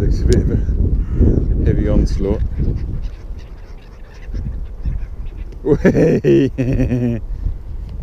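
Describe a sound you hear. Gulls call overhead.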